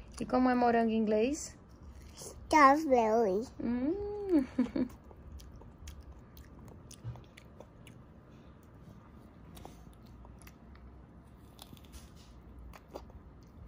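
A little girl chews food softly.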